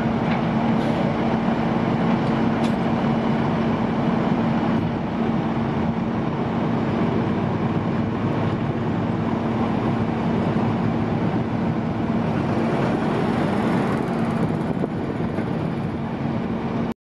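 A tow truck's diesel engine rumbles steadily nearby.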